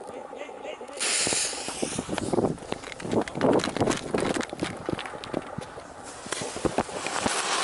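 A firework fuse sizzles and crackles as it burns.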